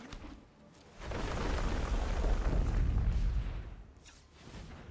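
A soft magical whoosh rises and fades as a card is played.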